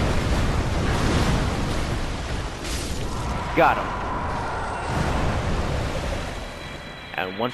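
A huge beast growls and roars with a deep rumble.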